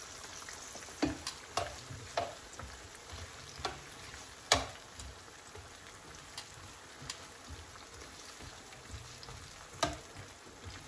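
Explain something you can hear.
Metal tongs clink against a ceramic pan while turning the chiles.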